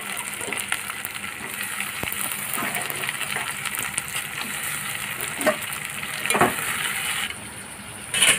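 Food sizzles gently in a pot.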